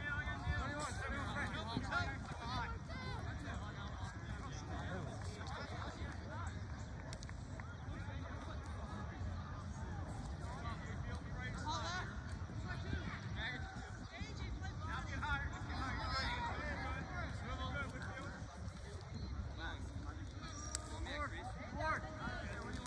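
Young players and onlookers shout and call out across an open outdoor field.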